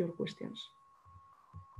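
A young woman speaks briefly and calmly over an online call.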